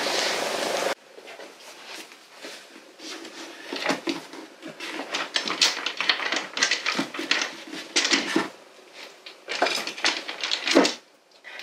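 Books slide and knock against a shelf.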